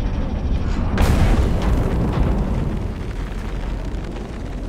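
A deep rushing whoosh swells as crystals shift.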